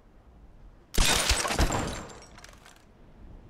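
A body lands hard on wooden planks.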